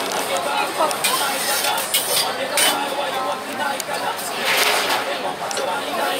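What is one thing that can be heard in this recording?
Metal containers clink and clatter as they are handled.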